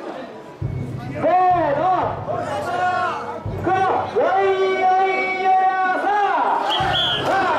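A man shouts through a megaphone.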